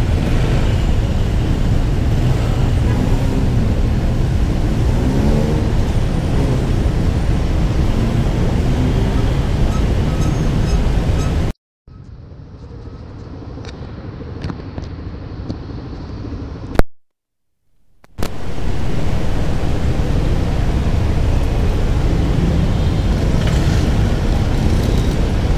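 Motorcycle engines idle close by with a low rumble.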